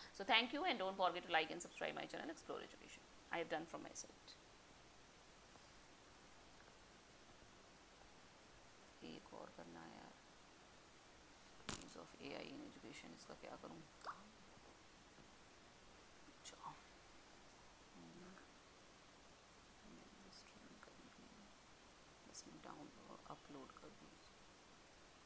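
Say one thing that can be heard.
A young woman speaks calmly into a microphone, in bursts with pauses.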